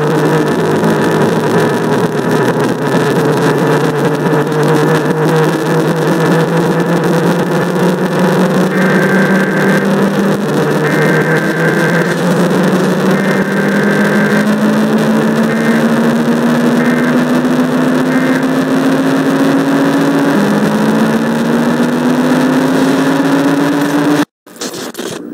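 A loud, droning electronic tone slowly rises in pitch and then cuts off abruptly.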